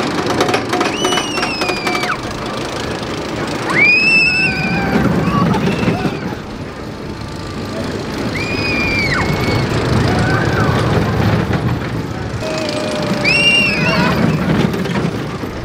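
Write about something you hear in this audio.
Children scream with delight on a ride.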